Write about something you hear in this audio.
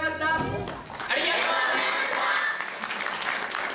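A choir of young voices sings together in a large hall.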